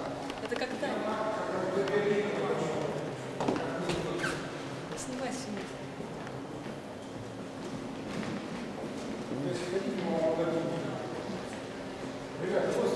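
Visitors murmur in a large echoing room.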